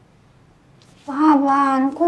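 A young woman speaks urgently up close.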